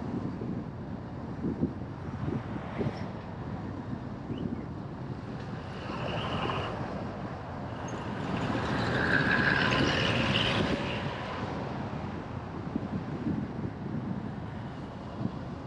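A car drives along a road with a low, steady rumble.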